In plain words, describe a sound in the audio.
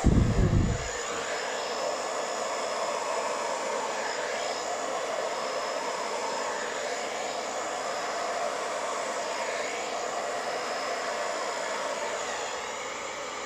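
A hair dryer blows with a steady whirring rush.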